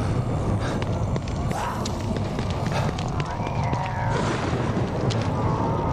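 Footsteps run quickly across hard ground.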